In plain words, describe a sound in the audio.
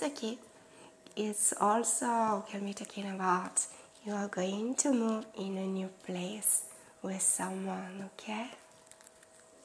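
A woman speaks warmly and with animation close to a microphone.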